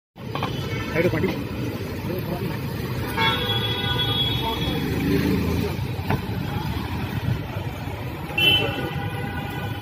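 Traffic rumbles steadily on a nearby street.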